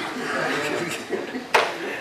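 A man laughs near a microphone.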